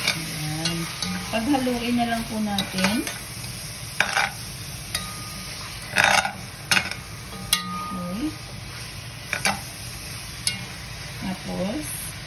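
A spatula scrapes and knocks against a pot.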